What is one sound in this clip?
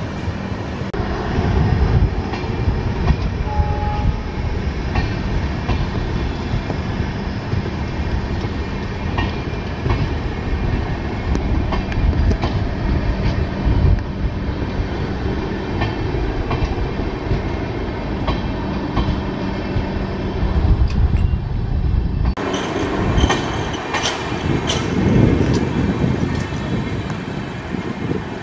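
Passenger coaches roll past on steel rails with a low rumble.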